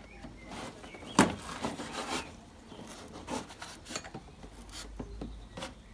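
Metal parts clink and clatter as they are handled.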